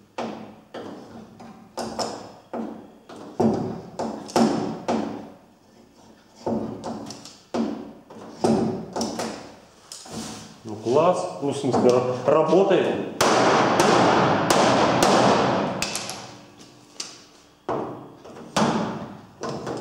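A slide hammer clacks sharply against a metal panel, again and again.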